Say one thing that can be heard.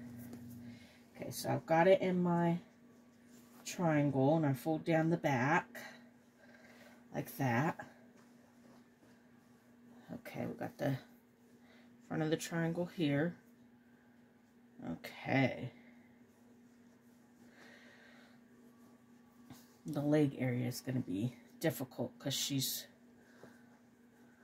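Soft cloth rustles and brushes.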